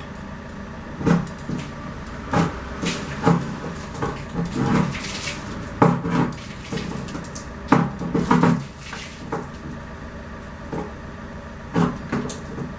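A door handle rattles and a glass door creaks as it is moved.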